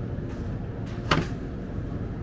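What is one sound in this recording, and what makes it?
A plastic milk bottle clunks as it is set down.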